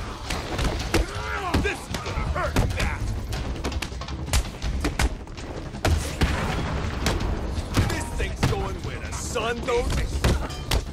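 Men grunt and cry out as they are struck.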